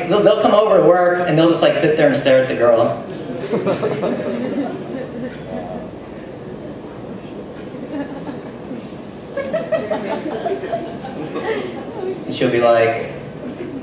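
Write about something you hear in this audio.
A young man speaks with animation through a microphone in a room with a slight echo.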